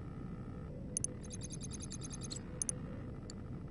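A game menu beeps and clicks as options are selected.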